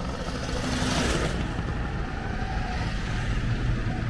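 A Citroën 2CV with its air-cooled flat-twin engine drives past.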